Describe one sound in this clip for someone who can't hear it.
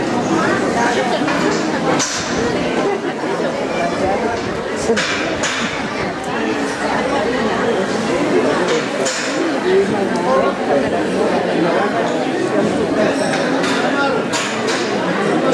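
A large crowd of men and women chatters all around.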